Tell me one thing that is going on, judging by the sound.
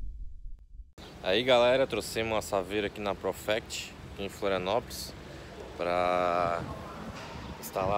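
A young man talks outdoors, close to the microphone, with animation.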